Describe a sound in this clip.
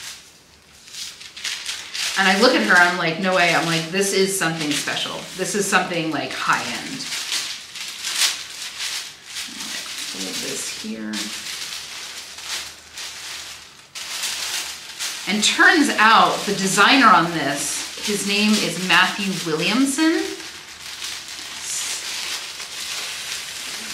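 Fabric rustles as it is folded.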